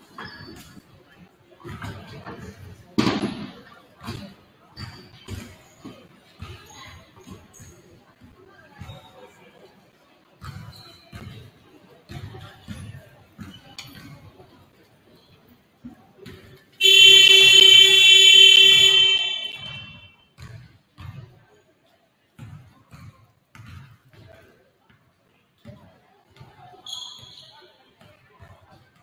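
People chatter in a large echoing gym.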